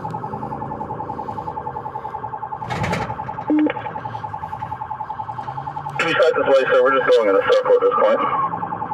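A car engine hums low while driving.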